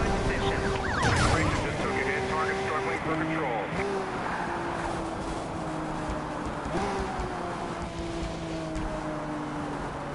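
A sports car engine roars steadily, its pitch dropping as it slows.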